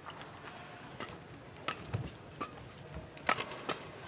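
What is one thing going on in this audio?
A shuttlecock is struck back and forth with rackets, in sharp pops.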